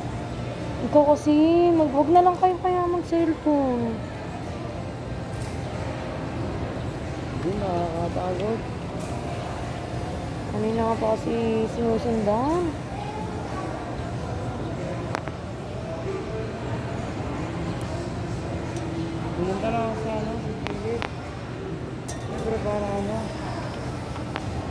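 A young woman talks close by, muffled through a face mask.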